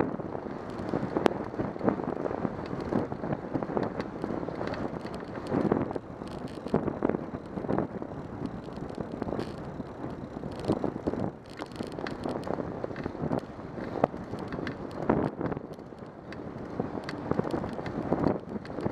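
Tyres roll and rattle over a rough road surface.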